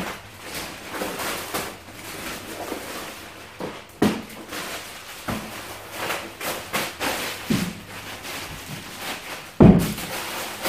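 Plastic bags rustle and crinkle as they are unpacked.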